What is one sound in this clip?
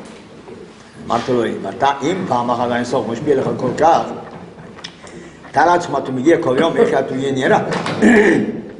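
An elderly man speaks with animation close by.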